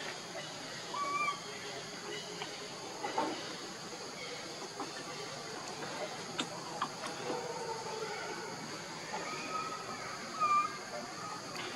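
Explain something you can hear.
A baby monkey squeaks in short, high cries.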